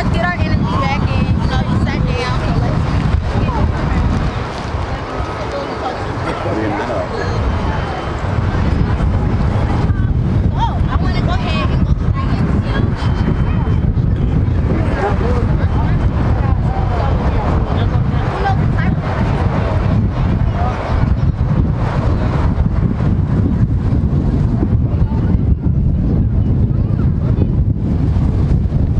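A crowd of children chatters and calls out outdoors.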